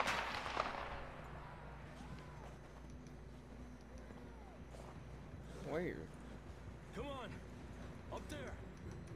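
A horse trudges through deep snow.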